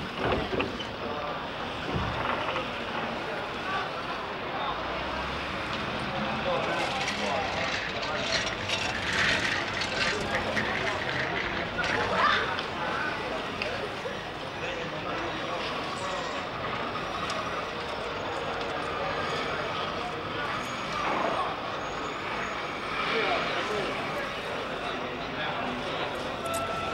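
A busy crowd murmurs outdoors.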